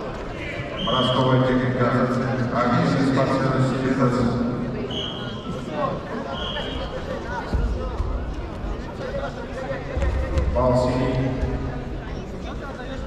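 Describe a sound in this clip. A man shouts loudly nearby in a large echoing hall.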